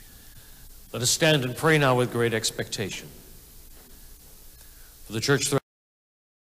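An adult man speaks loudly and close through a microphone.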